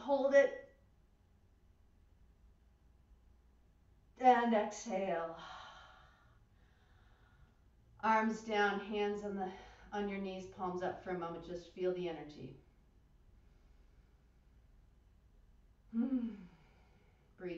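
A woman speaks calmly and slowly into a microphone, with pauses.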